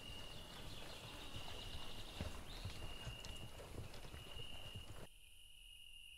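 Horse hooves thud slowly on soft ground.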